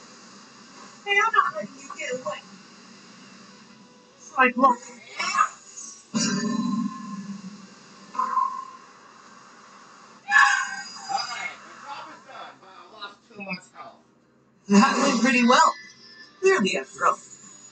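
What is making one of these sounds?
Punches and energy blasts thud and whoosh through a television speaker.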